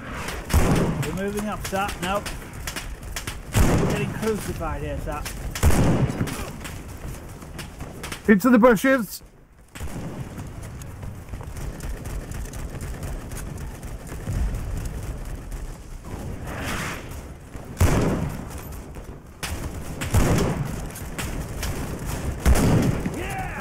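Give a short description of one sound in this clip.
Rifle shots crack in a game.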